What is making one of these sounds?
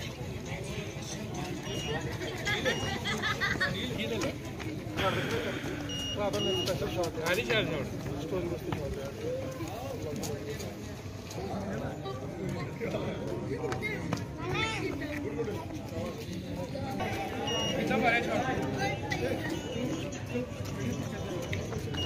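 Running shoes slap on the road as runners pass.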